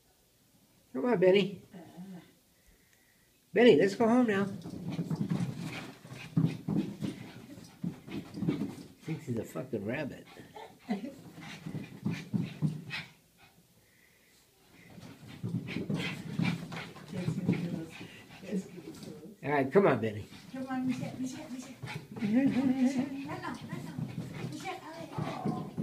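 Small dogs growl and yap as they play.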